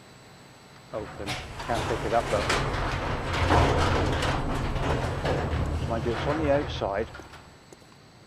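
A metal roller door rattles loudly as it rolls open.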